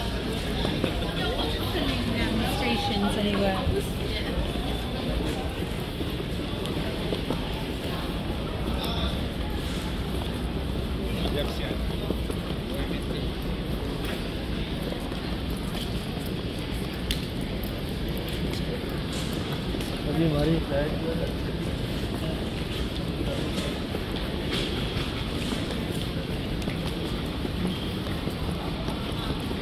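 A busy indoor hall echoes with a steady murmur of crowd chatter and footsteps.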